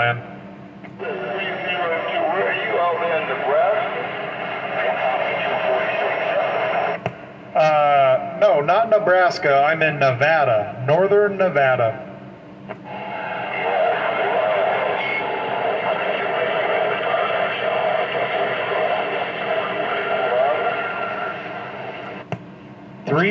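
Static hisses and rushes from a two-way radio loudspeaker.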